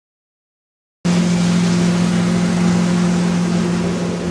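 Water splashes against a moving boat's hull.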